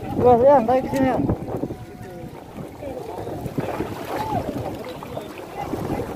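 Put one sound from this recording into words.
Water splashes as people pull weeds from the water.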